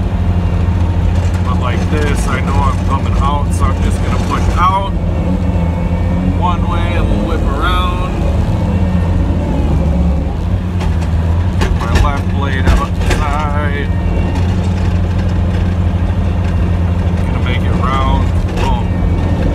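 A snowplow blade scrapes and pushes snow across pavement.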